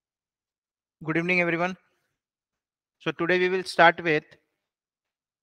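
A man speaks calmly through a microphone in an online call.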